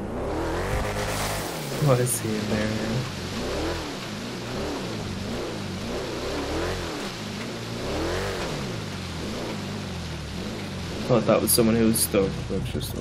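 Water splashes and sprays around a truck driving through it.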